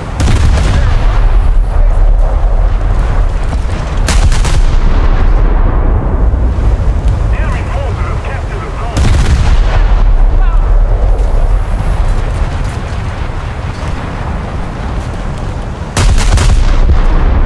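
Shells explode with deep rumbling blasts.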